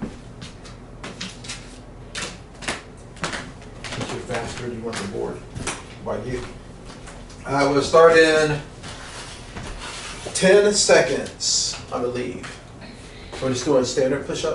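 Sneakers squeak and tap on a wooden floor.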